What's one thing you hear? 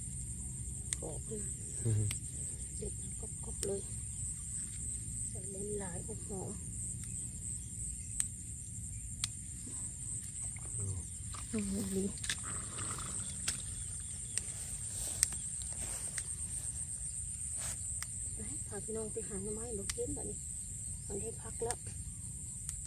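A woman speaks calmly in short phrases close by.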